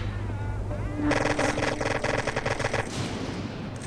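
Pistols fire in rapid bursts of gunshots.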